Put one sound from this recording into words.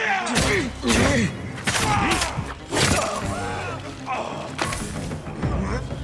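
A sword stabs into flesh with wet, heavy impacts.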